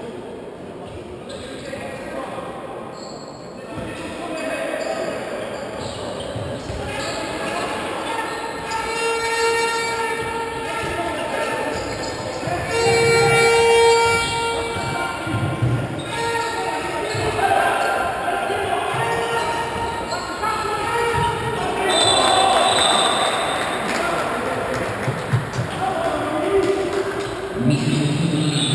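Shoes squeak on a hard court in a large echoing hall.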